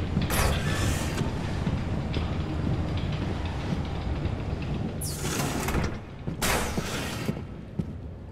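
A sliding metal door hisses open with a rush of air.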